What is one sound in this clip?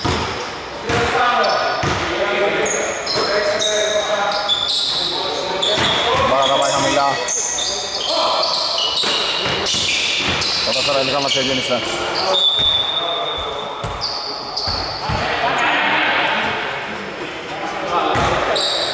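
Men shout to each other across an echoing hall.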